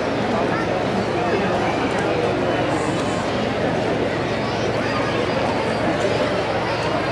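A large outdoor crowd murmurs and chatters steadily.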